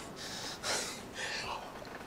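A man gulps down a drink.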